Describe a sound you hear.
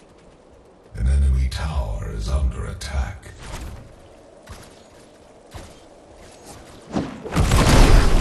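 Loud blasts rumble and boom.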